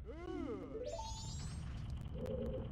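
A magical shimmering chime rises and sparkles.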